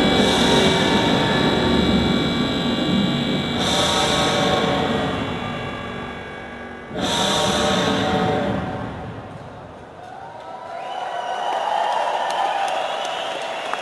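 Electronic music plays loudly through a large hall's loudspeakers.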